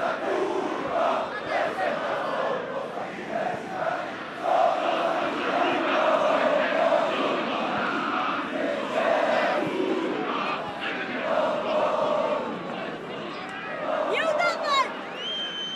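A large crowd chants and cheers steadily in an open stadium.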